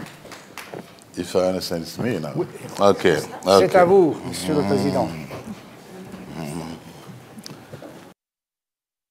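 A man speaks through a microphone in a hall.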